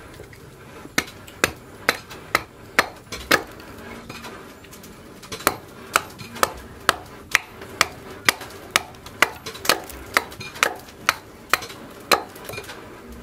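A hatchet chops into wood with sharp repeated blows.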